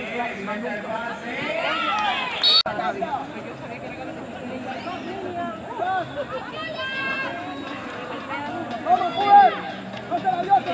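Young women call out to each other across the field.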